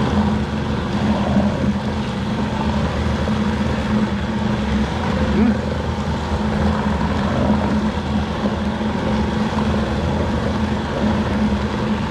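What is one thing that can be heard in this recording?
Ground meat squelches under hands.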